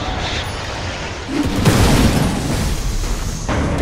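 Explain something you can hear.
A whirlwind roars loudly.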